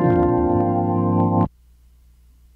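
An electric organ plays a loud sustained chord, then stops abruptly.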